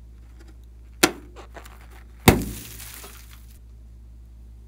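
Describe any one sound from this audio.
A rubber balloon bursts when snipped with scissors.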